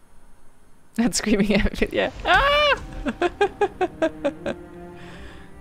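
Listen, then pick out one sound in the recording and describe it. A young woman laughs loudly and brightly into a close microphone.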